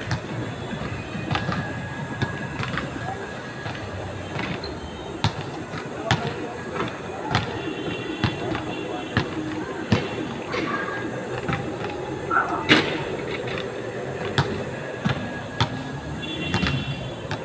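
A basketball bounces on an outdoor court with sharp thuds.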